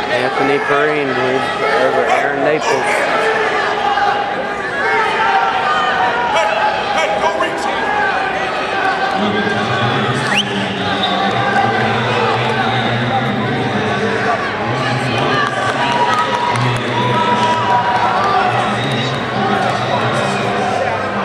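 A crowd murmurs and calls out in a large echoing arena.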